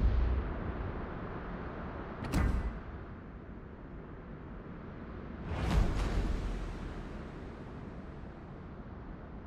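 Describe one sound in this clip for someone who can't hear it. Waves wash softly on open sea.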